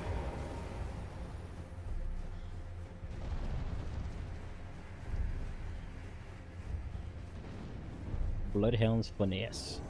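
Footsteps run crunching through snow.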